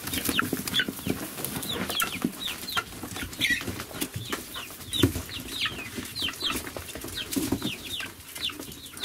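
Young chickens cheep constantly and closely.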